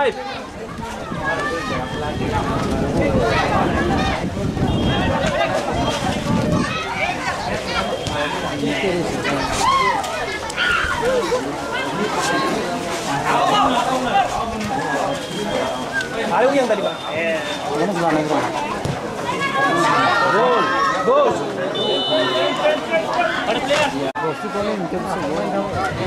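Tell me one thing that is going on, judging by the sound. A crowd of spectators shouts and cheers in the distance, outdoors.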